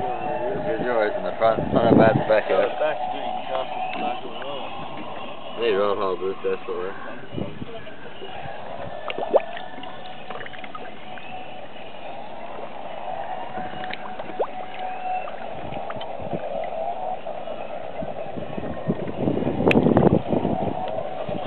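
Water sloshes and gurgles close by.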